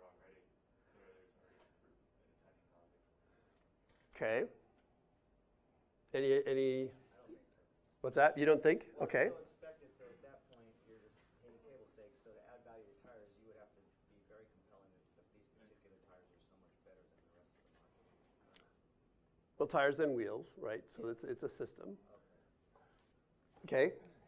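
A middle-aged man speaks to an audience, pausing between phrases.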